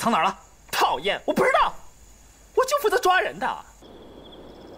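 A young man answers with a strained, complaining voice, close by.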